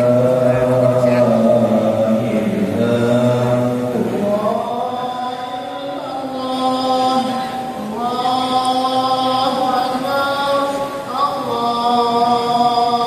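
A group of men chant together in unison nearby, holding long notes.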